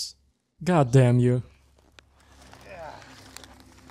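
Dry grass rustles as a body rolls over it.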